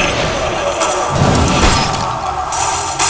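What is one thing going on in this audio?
A magical bolt crackles and bursts with a whoosh.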